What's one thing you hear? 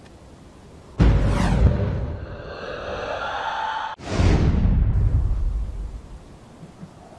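A figure slides down a rope with a loud rushing whoosh.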